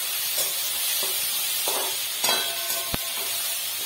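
A metal spatula scrapes and stirs inside a wok.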